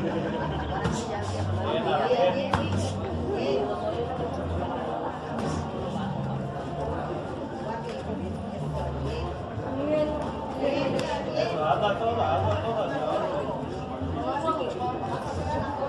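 Gloved punches thud and slap against each other.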